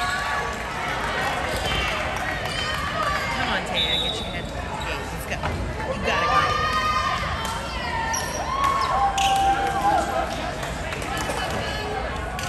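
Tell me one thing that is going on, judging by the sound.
A volleyball is struck with loud slaps.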